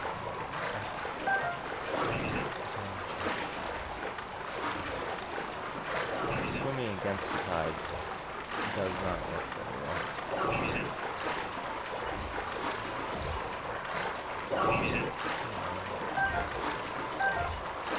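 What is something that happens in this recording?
Water splashes with steady swimming strokes.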